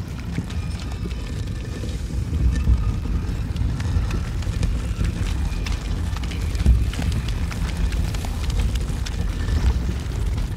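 Soft footsteps shuffle slowly over a stone floor.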